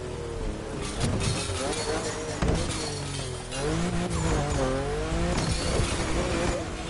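A car crashes through a metal fence with a loud bang.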